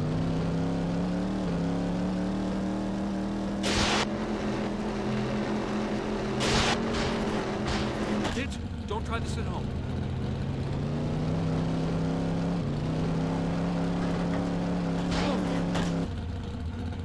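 A race car engine hums steadily and revs up and down.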